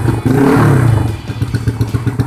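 A four-stroke single-cylinder motorcycle engine revs briefly.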